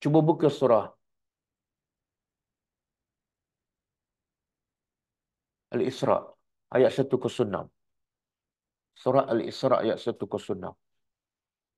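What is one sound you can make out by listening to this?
An older man speaks calmly into a microphone in short phrases with pauses between them.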